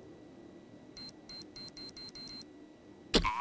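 Electronic keypad beeps sound in quick succession.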